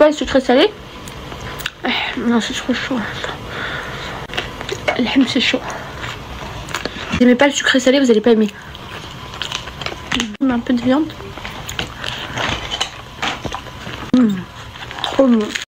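Food squelches and crunches as a young woman chews.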